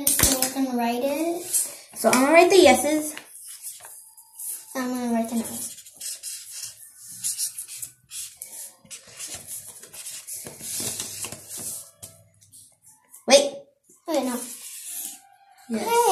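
A boy speaks close to the microphone in an animated, sing-song voice.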